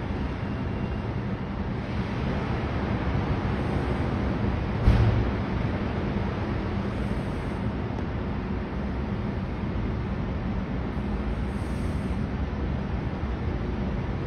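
Traffic rolls along a highway, tyres hissing on a wet road.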